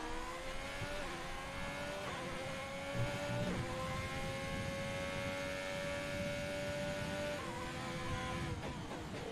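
A racing car's gears shift with brief jolts in the engine note.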